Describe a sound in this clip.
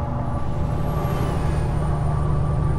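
An oncoming truck passes by with a whoosh.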